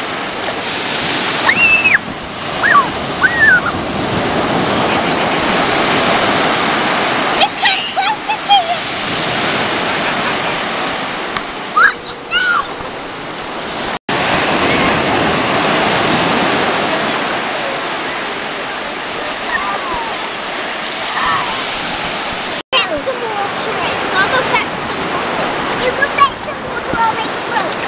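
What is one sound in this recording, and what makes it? Young girls squeal and shout with excitement nearby.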